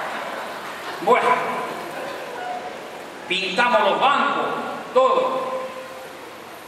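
An elderly man speaks with animation into a microphone, heard through loudspeakers in a large echoing room.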